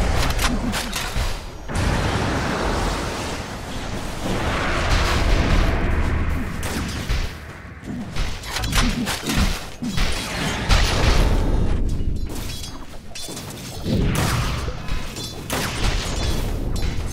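Game weapons clash and strike repeatedly.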